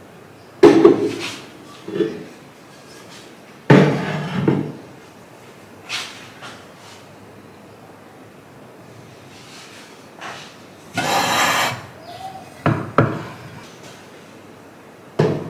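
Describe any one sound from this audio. Ceramic objects clunk and scrape as they are set down on a wooden shelf.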